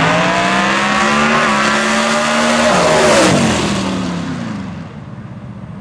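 Two race car engines roar loudly as the cars speed past and fade into the distance.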